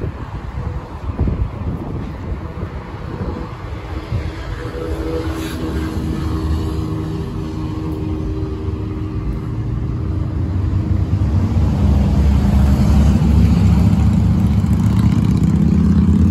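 City traffic hums and rumbles nearby.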